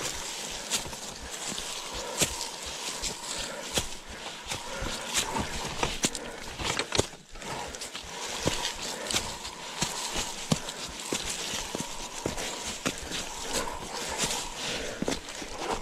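A bicycle frame and chain clatter and knock over bumps.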